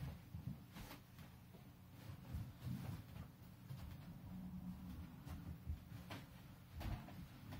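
A wooden chair knocks and scrapes on the floor.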